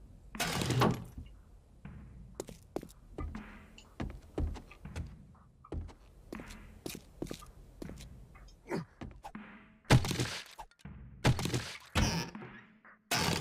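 Footsteps thud across wooden and tiled floors.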